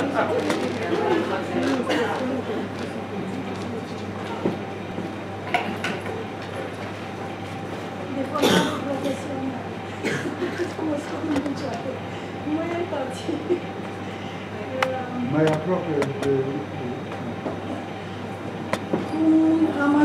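An elderly woman speaks calmly into a microphone, heard through a loudspeaker in a room.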